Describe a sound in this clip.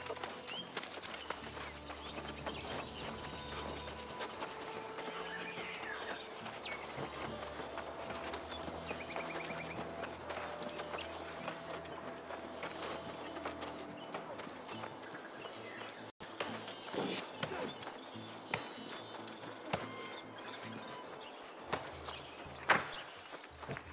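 Footsteps run steadily on a dirt path.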